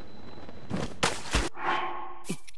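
A menu opens with a short whoosh and soft clicks.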